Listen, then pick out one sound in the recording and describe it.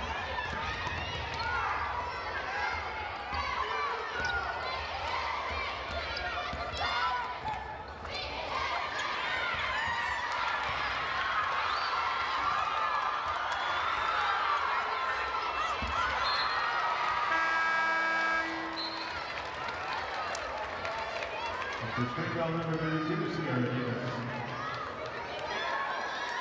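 A large indoor crowd cheers and shouts in an echoing gym.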